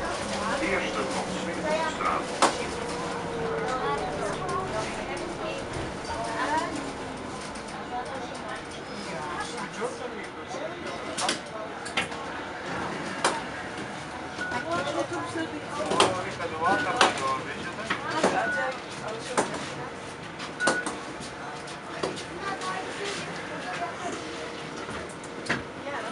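A bus engine hums and rattles steadily inside a moving bus.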